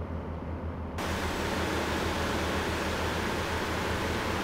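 Tyres and wind roar loudly as a truck drives along a highway.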